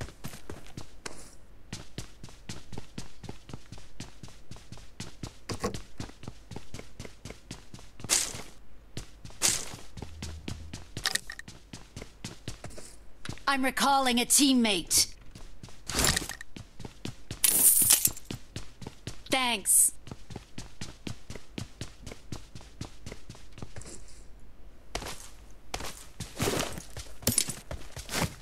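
Quick footsteps patter across hard floors.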